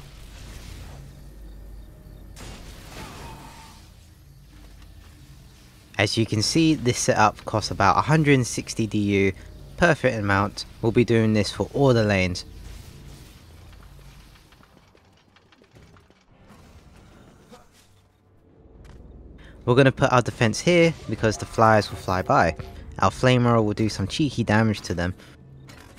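Magic spells crackle and zap in quick bursts.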